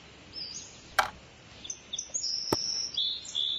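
A light wooden box is set down with a soft knock.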